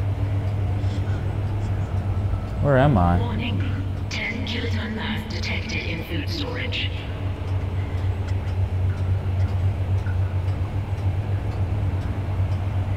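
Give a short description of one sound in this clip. Heavy boots clank on a metal floor.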